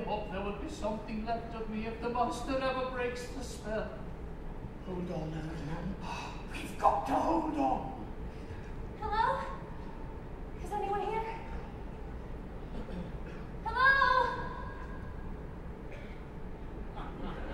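A woman sings with expressive, held notes.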